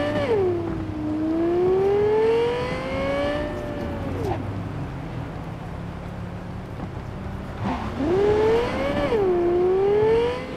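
A sports car engine roars, its pitch rising and falling as the gears shift.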